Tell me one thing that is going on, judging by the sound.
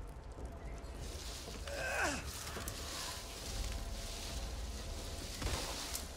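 Footsteps crunch over grass and earth outdoors.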